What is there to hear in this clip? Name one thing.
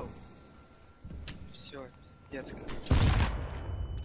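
A gunshot cracks in a video game.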